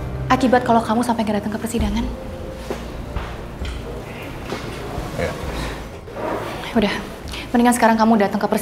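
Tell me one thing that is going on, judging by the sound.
A woman speaks emotionally, close by.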